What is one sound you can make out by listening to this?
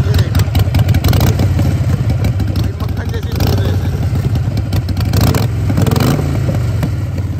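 A motorcycle engine revs up in short bursts and drops back.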